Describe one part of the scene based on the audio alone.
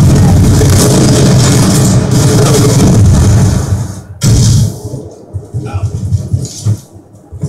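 Loud gunfire and explosions from a video game play through a television speaker, with some distortion.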